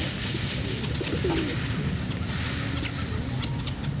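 Pigeons flap their wings as they take off.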